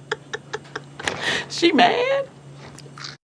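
A woman speaks playfully, close by.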